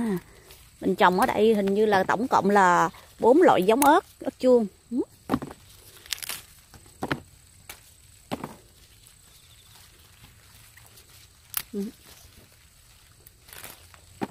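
Leaves rustle as pepper plants are pushed aside.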